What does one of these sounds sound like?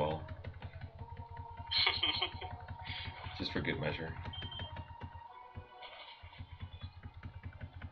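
Chirpy retro video game music plays with a steady, pulsing beat.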